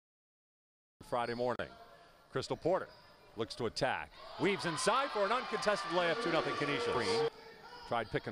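Basketball players' shoes squeak and thump on a hardwood court.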